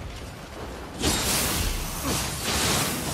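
A magic blast crackles and bursts with sparks.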